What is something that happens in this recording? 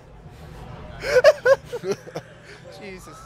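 Young men laugh together.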